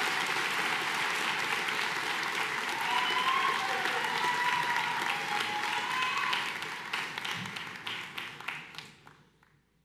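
An audience applauds and cheers in a large echoing hall, then fades.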